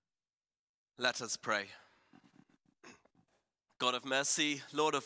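A man speaks through a microphone in a large echoing hall.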